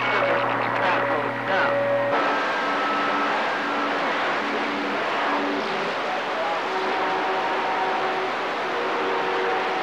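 A radio receiver hisses with loud static.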